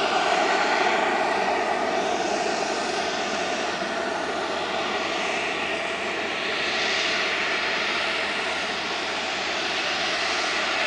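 A jet airliner's engines roar loudly as it speeds down a runway.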